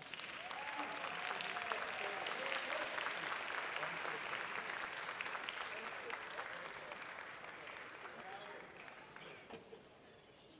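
A crowd applauds loudly in a large hall, then the clapping fades.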